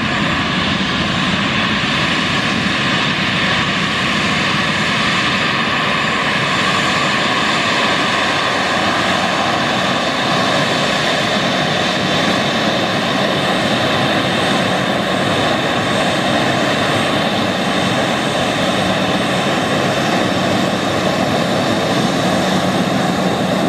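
The turbofan engines of a twin-engine regional jet whine as it taxis.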